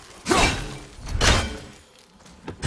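An axe strikes metal with a loud clang.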